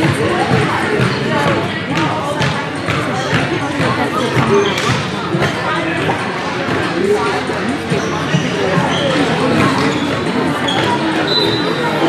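Hockey sticks clack against a ball on a hard floor.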